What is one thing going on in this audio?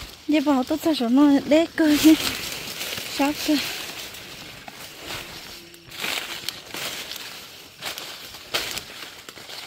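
Dry maize leaves rustle and crackle as someone pushes through them.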